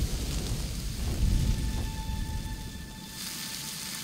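A fire roars and crackles under a pot.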